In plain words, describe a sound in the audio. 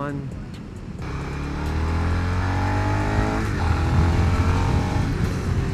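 A motorcycle engine revs up loudly and climbs in pitch.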